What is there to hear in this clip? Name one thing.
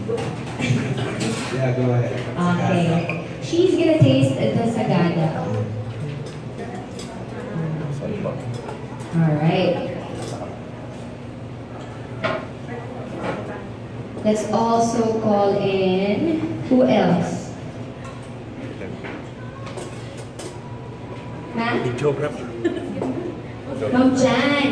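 Several adults talk nearby in a room.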